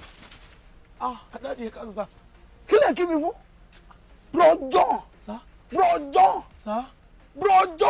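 A man speaks loudly with animation close by.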